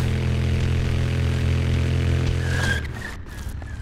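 A motorcycle engine rumbles loudly and steadily, then cuts off.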